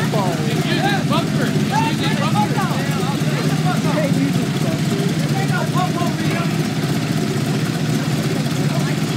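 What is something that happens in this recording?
A motorcycle engine idles with a deep, steady rumble close by.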